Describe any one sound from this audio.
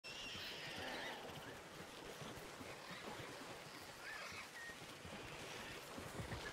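Heavy footsteps of a large animal thud on grass.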